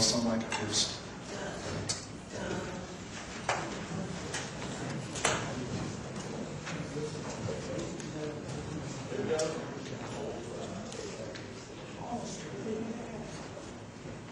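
A jazz band starts to play softly.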